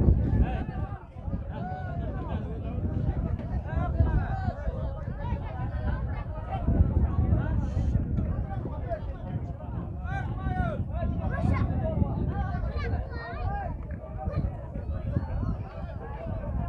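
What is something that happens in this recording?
A crowd of men and boys chatters and calls out outdoors.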